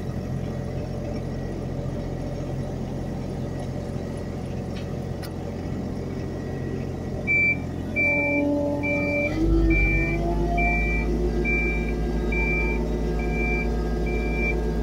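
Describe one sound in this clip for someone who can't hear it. An excavator engine rumbles steadily from inside the cab.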